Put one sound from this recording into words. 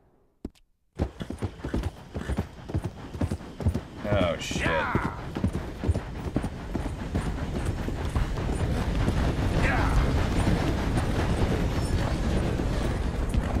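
Horse hooves clop steadily on a wooden railway track.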